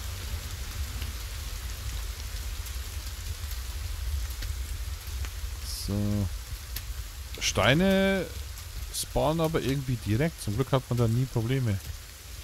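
Rain patters steadily on the ground.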